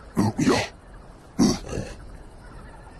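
A man speaks briefly with surprise.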